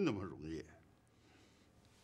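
A middle-aged man speaks in a low, tense voice nearby.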